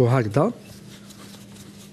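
A rolling pin rolls over dough.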